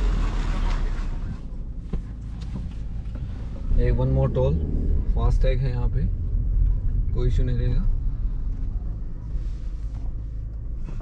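A car engine hums steadily with a low rumble from inside the car.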